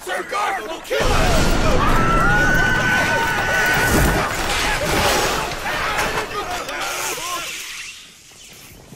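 A loud explosion blasts and roars.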